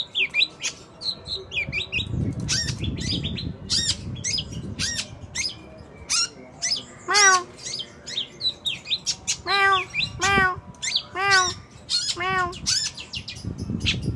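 A caged songbird sings close by in rapid, varied chirps and whistles.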